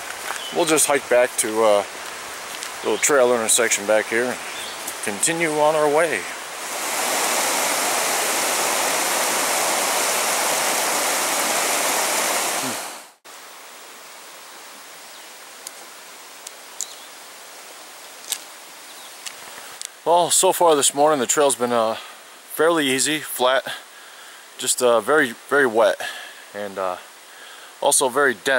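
An adult man talks calmly and close by.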